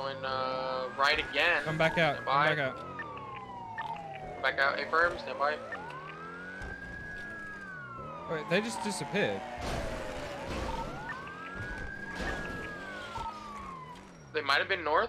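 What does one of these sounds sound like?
A police siren wails up and down.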